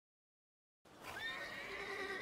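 A horse-drawn carriage rolls over cobblestones with clopping hooves.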